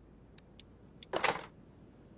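A metal part clicks into place.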